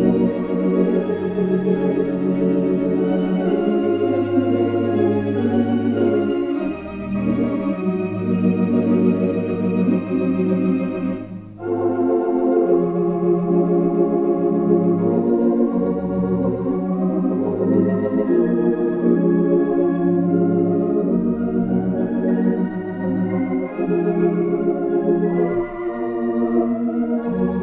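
An organ plays slow, sustained chords.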